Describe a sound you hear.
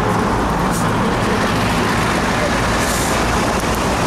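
A large bus rumbles past close by.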